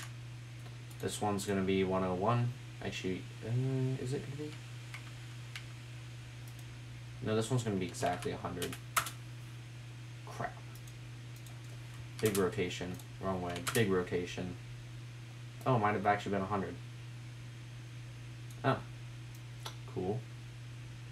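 A man speaks calmly nearby, in short bursts with pauses.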